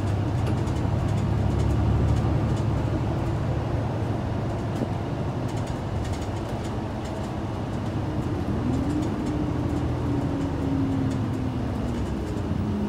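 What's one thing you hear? A diesel city bus with an automatic transmission drones along, heard from inside the cabin.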